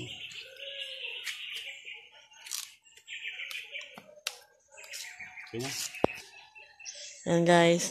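Tough husks rip and tear as they are peeled by hand.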